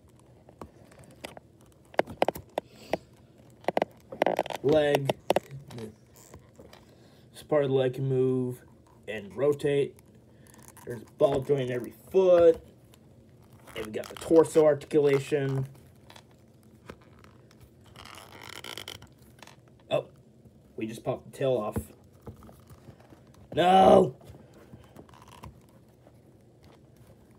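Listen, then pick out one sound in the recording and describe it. Hard plastic clicks and taps as a small toy is handled and its limbs are moved.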